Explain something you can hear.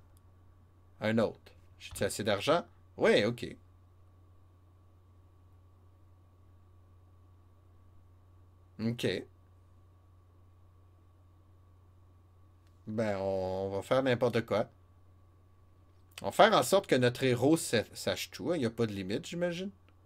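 A man speaks casually into a close microphone, in short bursts with pauses.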